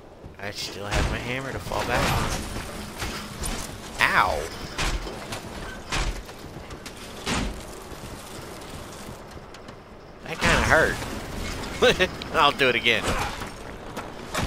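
Heavy metal structures crash and clang as they are smashed apart.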